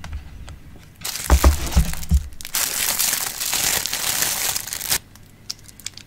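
A plastic wrapper crinkles loudly as hands pull something out of it.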